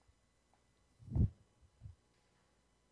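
A man speaks briefly and quietly close to a microphone.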